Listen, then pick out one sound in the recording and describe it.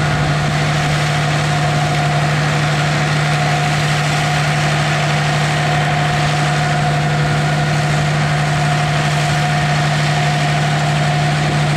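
A harvester rattles and clanks as it is pulled through the field.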